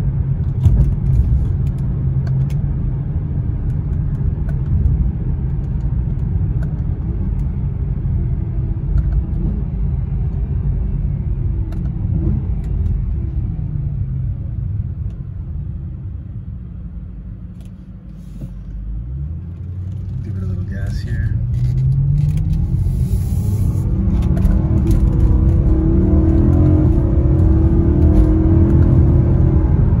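A car engine rumbles, slows to a quiet idle, then revs up as the car accelerates.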